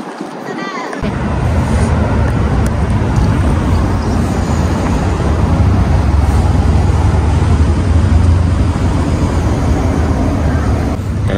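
Traffic rumbles steadily on a wide road outdoors.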